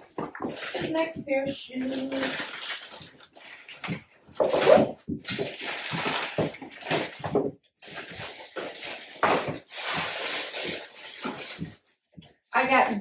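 Plastic packaging rustles and crinkles close by.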